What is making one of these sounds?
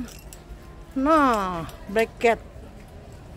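A young boy speaks excitedly nearby.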